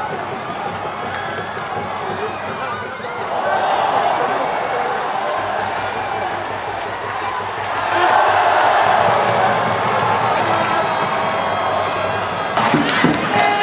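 A stadium crowd roars, swelling loudly twice.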